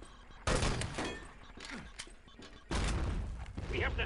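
A rifle is handled and reloaded with metallic clicks.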